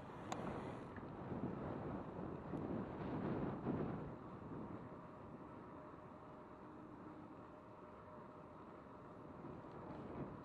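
Bicycle tyres roll smoothly over asphalt.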